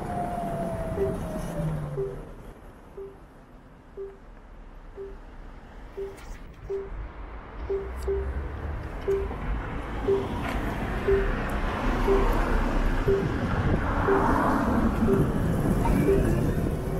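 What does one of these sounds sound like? A motorcycle's turn signal ticks steadily.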